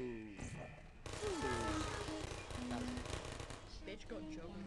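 Small robotic guns fire a rapid rattling burst.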